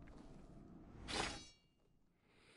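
A katana blade slides out of its scabbard with a metallic ring.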